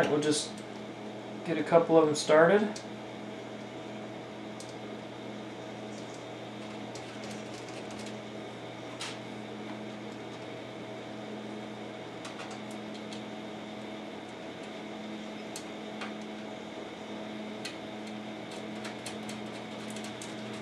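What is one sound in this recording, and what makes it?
Plugs click softly into sockets.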